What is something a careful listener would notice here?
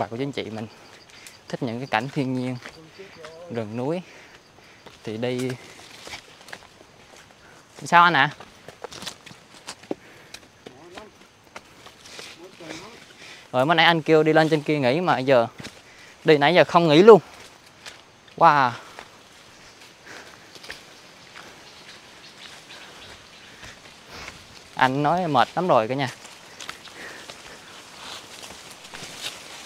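Footsteps crunch on a rocky dirt path.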